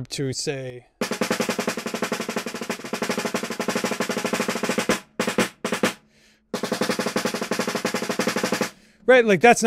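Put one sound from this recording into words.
Drumsticks play a fast roll on a snare drum.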